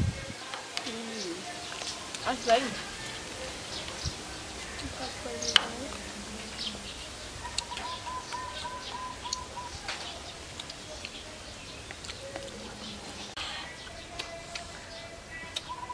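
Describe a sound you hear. Spoons clink against a plate.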